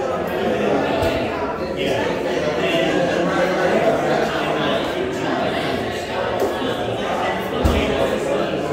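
A cable plug knocks against a wooden box.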